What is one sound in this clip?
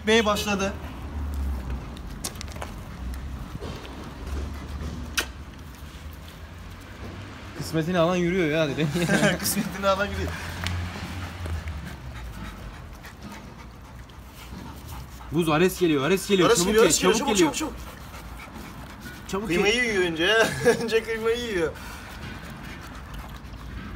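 A dog chews wet raw meat close by.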